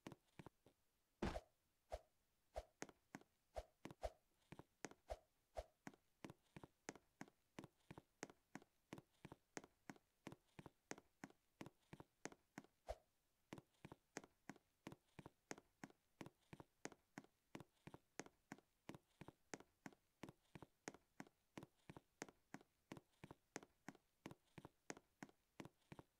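A game character's footsteps patter quickly and evenly.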